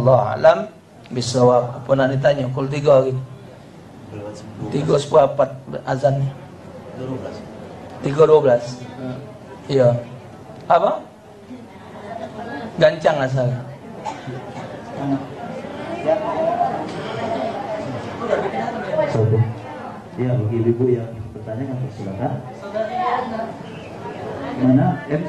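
An elderly man speaks calmly into a microphone, heard through a loudspeaker in an echoing room.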